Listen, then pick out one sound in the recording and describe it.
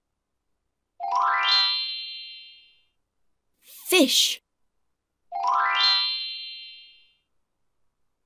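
A bright twinkling chime sounds twice.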